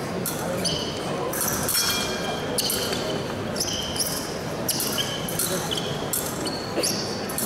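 Fencing blades click and scrape against each other.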